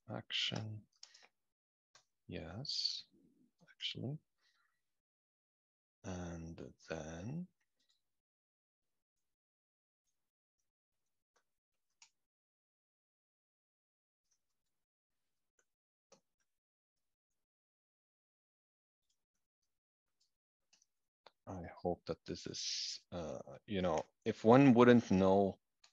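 A young man talks calmly into a close microphone, in short bursts with long pauses.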